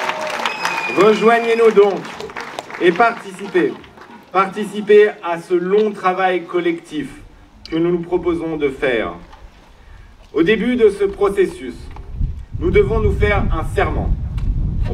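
A man speaks steadily into a microphone, heard through a loudspeaker outdoors.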